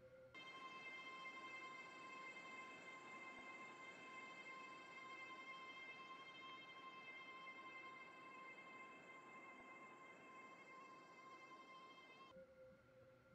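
A train's electric motor hums steadily as the train gathers speed.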